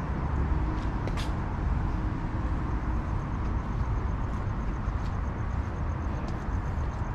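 Wind blows outdoors, buffeting with a low rumble.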